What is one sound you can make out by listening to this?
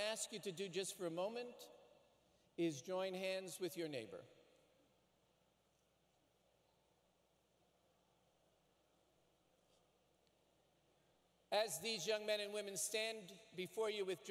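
A man reads out over a loudspeaker in a large echoing hall.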